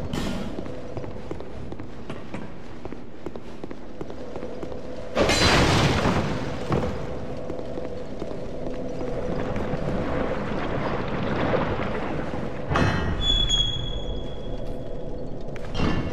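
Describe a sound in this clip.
Armoured footsteps run across a stone floor.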